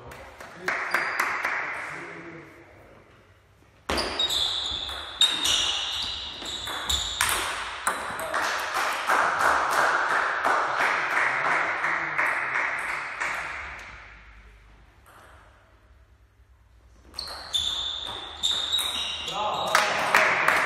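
A ping-pong ball clicks back and forth off paddles and a table in an echoing hall.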